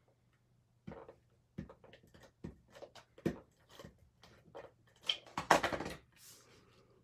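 Paper rustles and taps against a tabletop.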